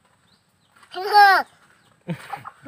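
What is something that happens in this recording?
A small boy laughs close by.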